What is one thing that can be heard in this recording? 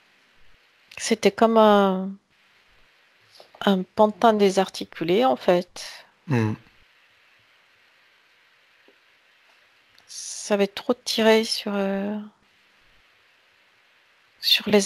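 A man speaks calmly into a headset microphone over an online call, with pauses.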